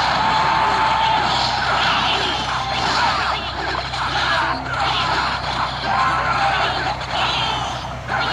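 Small cartoon fighters clash with quick zaps, thuds and squeaks.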